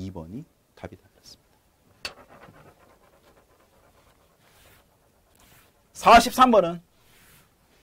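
A man talks through a microphone, explaining with animation.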